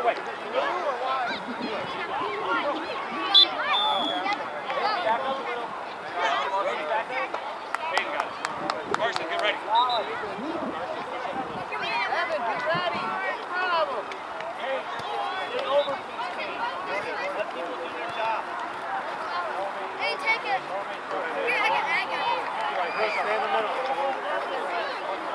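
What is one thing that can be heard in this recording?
A crowd of spectators and players shouts and calls out across an open field outdoors.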